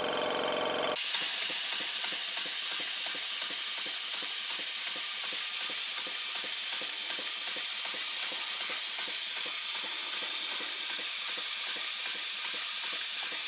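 A small steam engine chuffs with a fast, steady rhythm.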